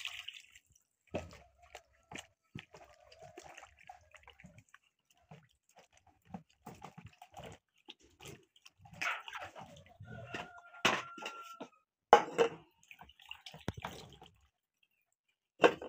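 Vegetables splash and squelch as hands wash them in water.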